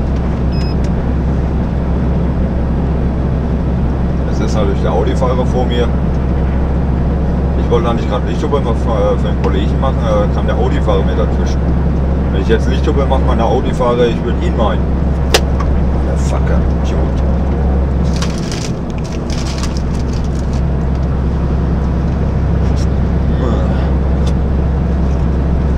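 A diesel truck engine drones steadily, heard from inside the cab while cruising on a motorway.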